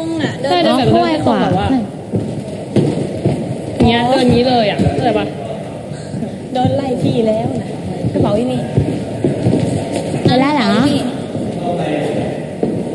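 Several young women talk with animation, close by.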